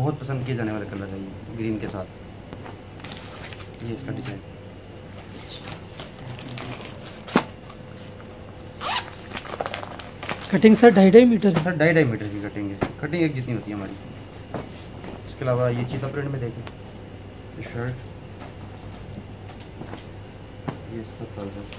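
Fabric rustles as it is unfolded and smoothed.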